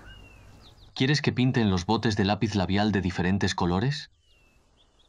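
A young woman speaks calmly and gently.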